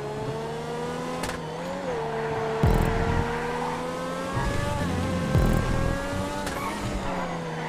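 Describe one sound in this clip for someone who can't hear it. A sports car engine hums steadily at high speed, its pitch rising and dipping.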